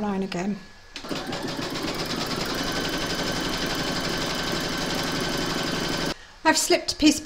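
An embroidery machine hums and stitches rapidly.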